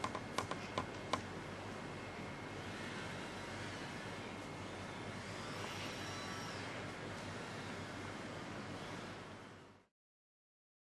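A small wheeled robot rolls across a hard floor with a faint motor whir.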